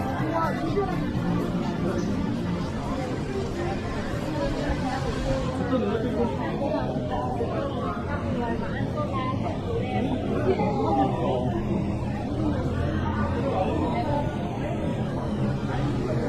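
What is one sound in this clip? A crowd of people chatter around on a busy street.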